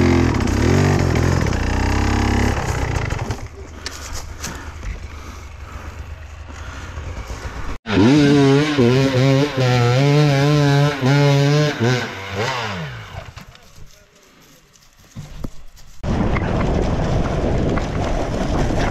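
A dirt bike engine runs and revs up close.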